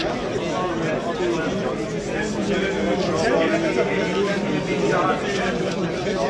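An elderly man talks calmly up close.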